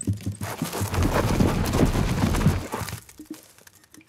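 A small mouse crunches noisily on crumbs.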